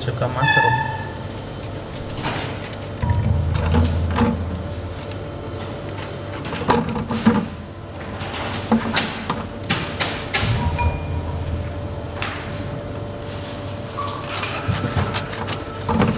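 A knife cuts through mushroom stems.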